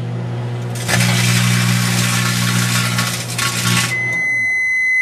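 Sparks crackle and snap inside a microwave oven.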